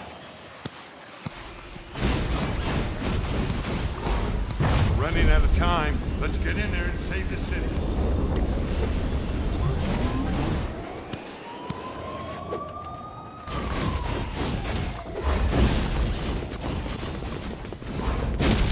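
Bright game coin chimes ping again and again.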